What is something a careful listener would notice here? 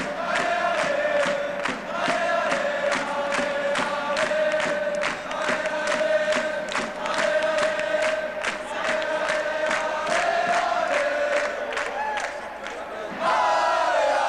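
A crowd of fans claps in rhythm.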